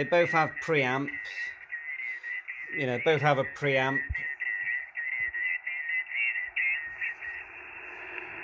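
A man's voice speaks over a crackly radio loudspeaker.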